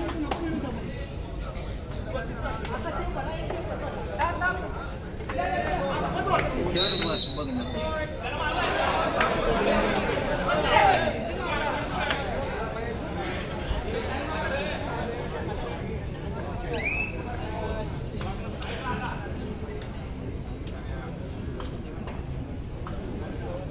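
A crowd of spectators chatters and cheers loudly.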